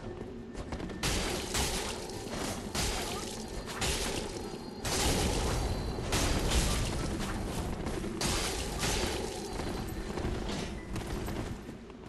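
Metal weapons clash and strike in quick bursts.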